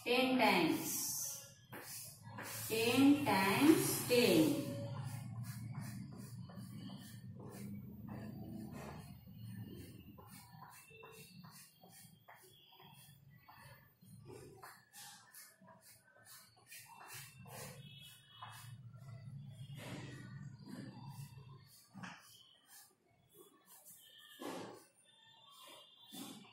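A woman speaks clearly and steadily nearby.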